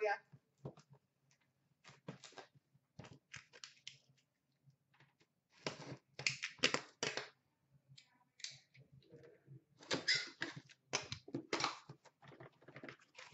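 Cardboard boxes rustle and scrape as hands shift them.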